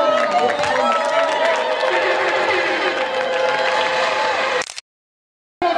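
People clap their hands in a lively crowd.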